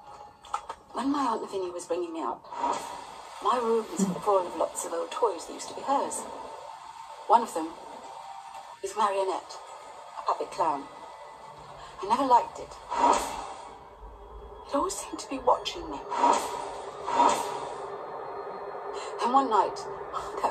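A middle-aged woman speaks softly, heard through a speaker.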